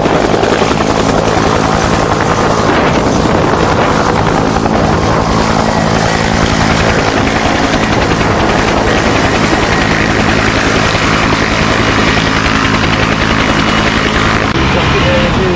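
A propeller plane's engines drone loudly overhead.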